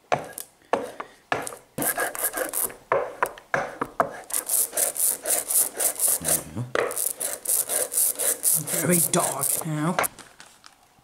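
A rubber roller rolls back and forth through sticky ink with a rapid tacky crackle.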